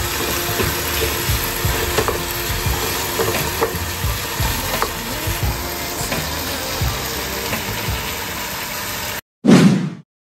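Food sizzles and crackles in a frying pan.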